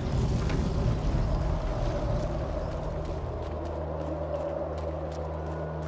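Footsteps patter quickly on stone and dirt.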